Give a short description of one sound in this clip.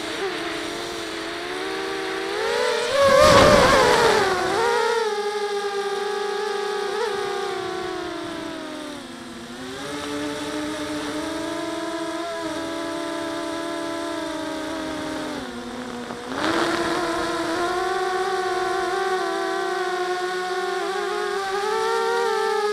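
A drone's motors whine steadily, rising and falling in pitch as it flies.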